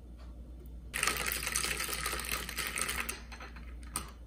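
A metal straw stirs ice, clinking against a glass.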